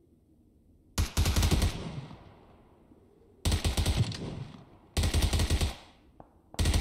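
Gunshots crack in rapid bursts nearby.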